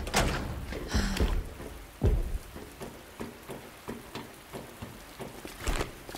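Hands and feet clank on a metal ladder.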